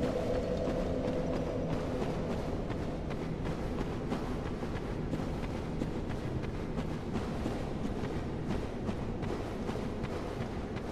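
Footsteps thud softly on wood.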